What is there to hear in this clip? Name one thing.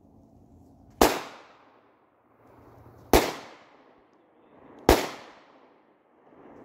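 A shotgun fires three loud shots outdoors, each echoing away.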